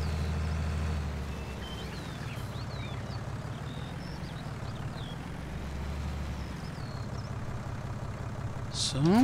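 A tractor engine rumbles steadily, rising and falling with the throttle.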